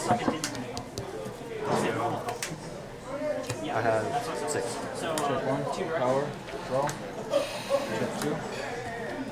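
Playing cards tap and slide softly on a mat.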